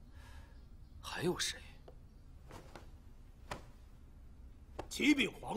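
A man speaks in short, forceful bursts nearby.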